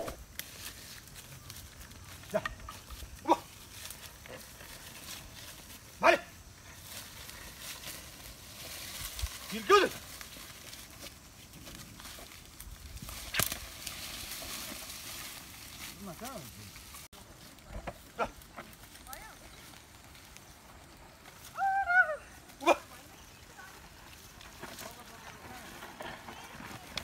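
A plough scrapes through soil.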